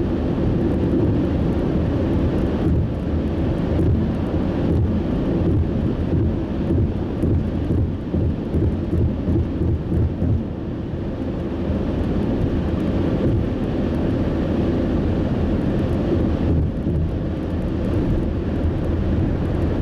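A car engine hums steadily as tyres roll over a highway, heard from inside the car.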